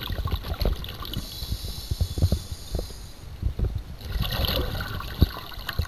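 Bubbles gurgle and burble close by underwater.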